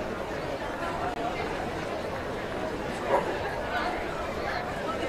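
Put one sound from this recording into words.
A crowd murmurs and chatters throughout a large echoing space.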